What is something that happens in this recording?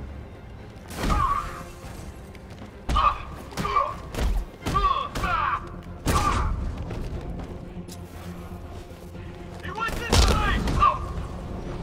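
Heavy punches and kicks thud and crack in a fight.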